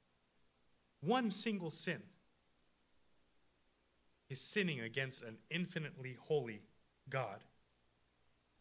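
A young man speaks calmly into a microphone in a lightly echoing room.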